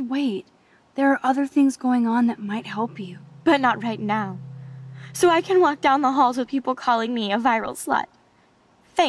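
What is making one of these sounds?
A teenage girl answers in an upset, bitter voice.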